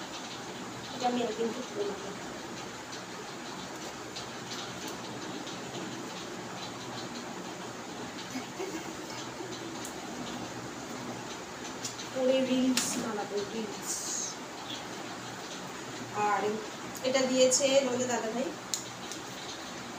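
A woman speaks close by, now and then.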